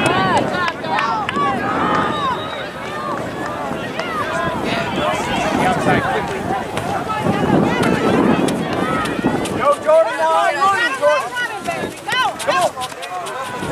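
Spectators cheer and yell from the sidelines.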